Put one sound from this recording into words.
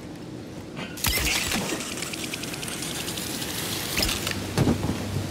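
A rope whooshes and creaks.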